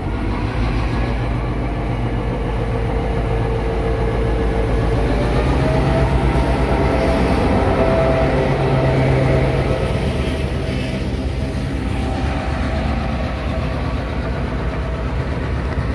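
Train wheels clatter and squeal on the rails as carriages roll past.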